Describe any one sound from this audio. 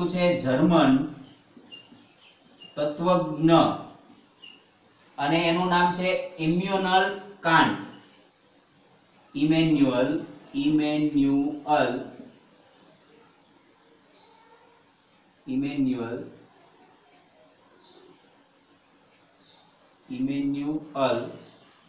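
A man speaks calmly and clearly, close by, in short phrases with pauses.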